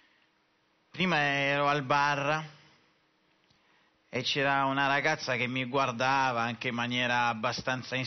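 A man sings expressively into a microphone, in bursts with pauses.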